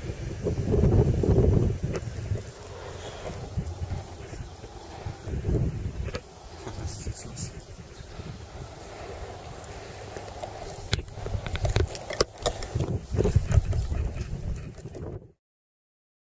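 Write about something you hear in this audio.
Wind buffets outdoors, rumbling in gusts.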